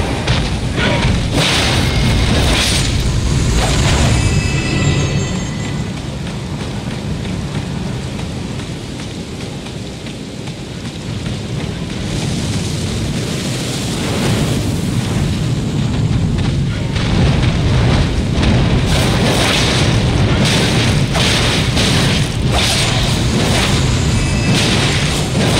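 Heavy metal blows clash and crack in a fight.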